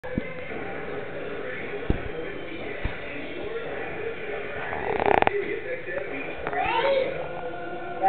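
A toddler's bare feet patter on a wooden floor.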